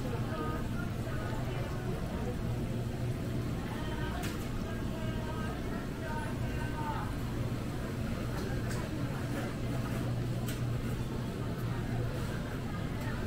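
Refrigerated display cases hum steadily.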